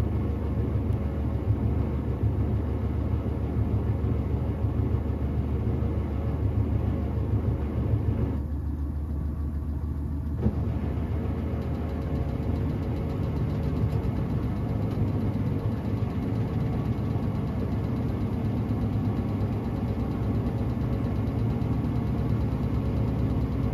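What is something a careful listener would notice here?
Wet laundry sloshes and tumbles inside a washing machine drum.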